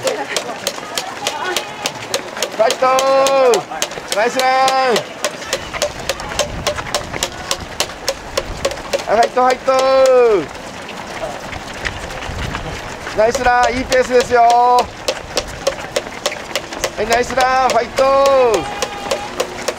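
Many runners' footsteps patter steadily on pavement.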